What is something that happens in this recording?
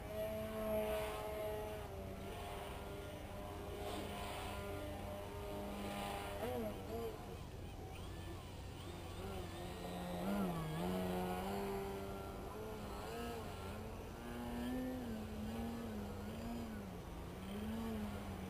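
A model plane's engine buzzes overhead, its pitch rising and falling as it flies.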